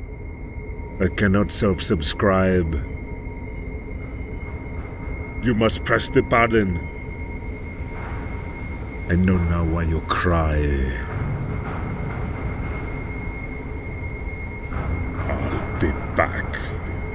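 A man speaks slowly in a deep, menacing voice.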